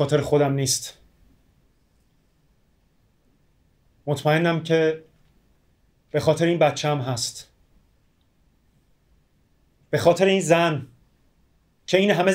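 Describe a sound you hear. A man speaks calmly in short phrases with long pauses, close by.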